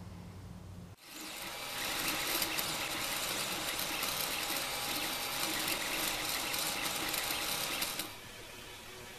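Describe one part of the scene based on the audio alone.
A printer's motors whir and buzz steadily.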